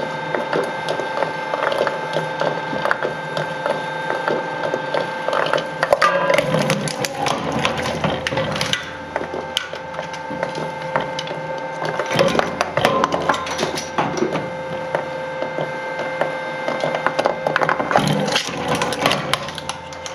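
Metal cans crunch and clank as they are crushed between the blades.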